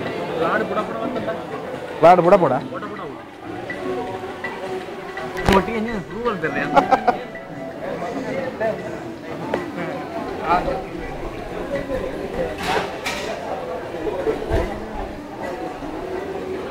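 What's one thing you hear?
Several men talk and chatter nearby.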